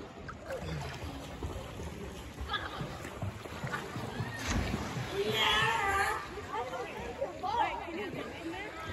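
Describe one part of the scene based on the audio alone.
Water splashes and laps close by.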